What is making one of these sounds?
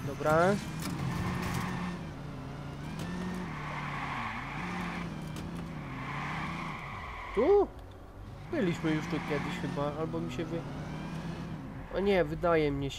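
Tyres screech loudly as a car skids around corners.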